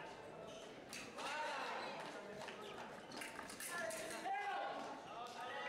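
Fencing blades clash and scrape together.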